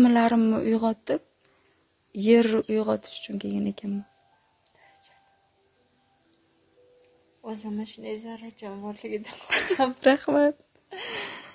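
A young woman talks calmly and close by.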